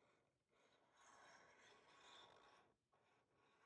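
A marker scratches softly across paper.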